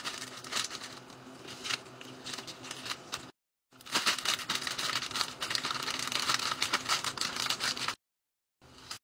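Plastic snack wrappers crinkle as they are placed into a wire basket.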